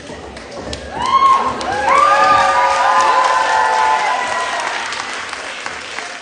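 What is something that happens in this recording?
A crowd of young women cheers and screams loudly in an echoing hall.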